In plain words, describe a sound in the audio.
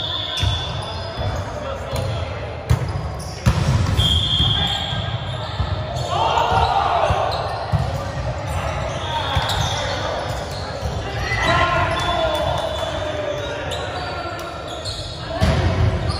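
Young men and women call out and chatter across an echoing hall.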